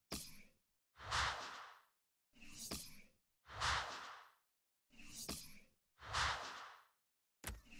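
Game menu whooshes swell and fade in short bursts.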